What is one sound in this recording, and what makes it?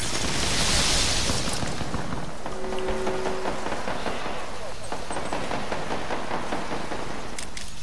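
An electric device crackles and hums loudly.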